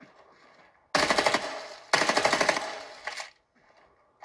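Rapid bursts of gunfire play loudly from a phone game.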